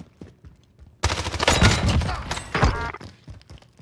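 A rifle fires rapid bursts of shots at close range.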